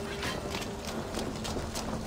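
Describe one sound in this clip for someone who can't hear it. A bonfire crackles.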